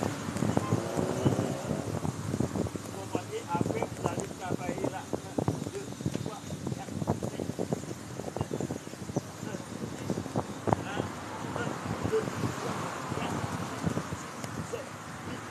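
A man slaps a tree trunk with his hands in quick, repeated knocks.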